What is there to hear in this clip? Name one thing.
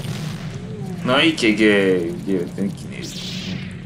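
A young man speaks briefly and with animation close to a microphone.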